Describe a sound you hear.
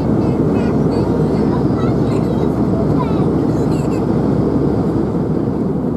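A young woman talks quietly in a low murmur.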